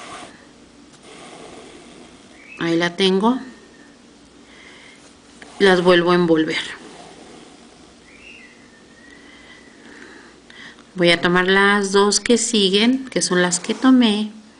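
Thread rasps softly as it is pulled through fabric.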